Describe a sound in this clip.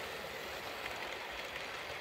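A model electric locomotive hums as it pulls a train along the track.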